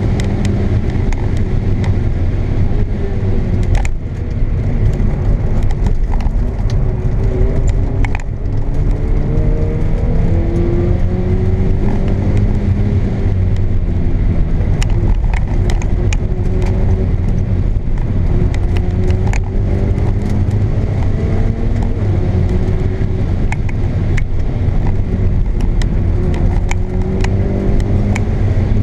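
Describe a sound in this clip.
A car engine drones loudly from inside the cabin, rising and falling in pitch as the car speeds up and shifts gears.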